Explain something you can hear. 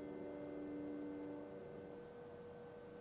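A piano chord rings out and slowly fades.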